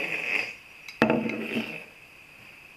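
A bowl is set down on a table with a knock.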